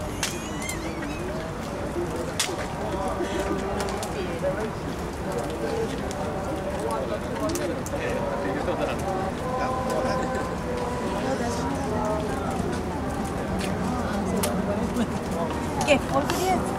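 A man speaks calmly outdoors, close by.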